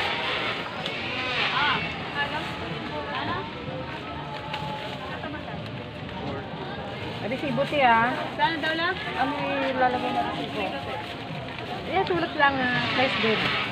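A plastic bag rustles as it is handled.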